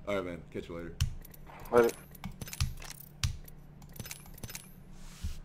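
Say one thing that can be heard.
Short electronic menu clicks sound.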